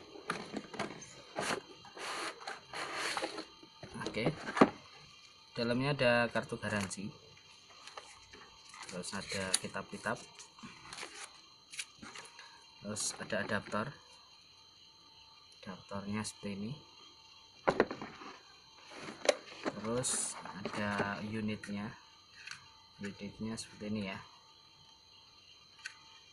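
Cardboard scrapes and rustles as a box is opened and handled.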